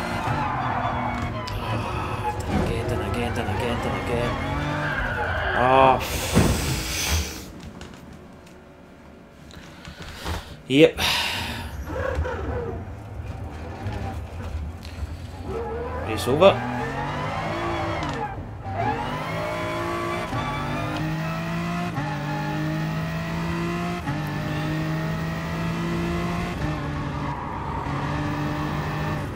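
A racing car engine roars and revs, climbing in pitch and dropping with each gear change.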